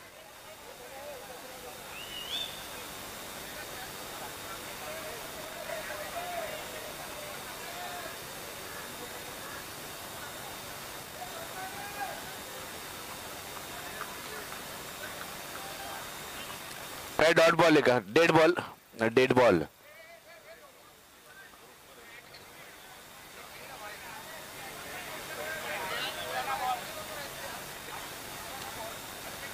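A crowd of men chatters and calls out in the open air.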